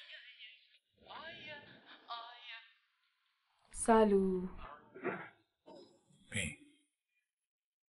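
A man answers calmly.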